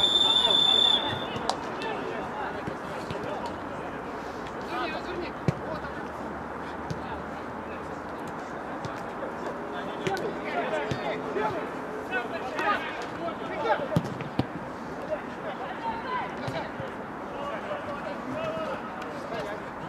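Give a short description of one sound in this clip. A football thuds off a boot.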